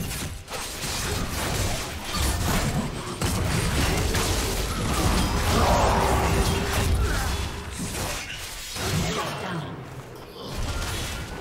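Video game spell effects whoosh and clash during a fight.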